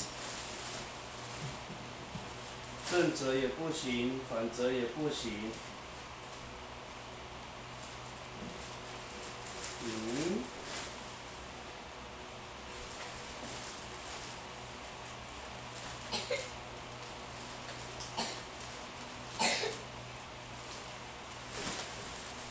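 A large plastic bag rustles and crinkles as it is handled.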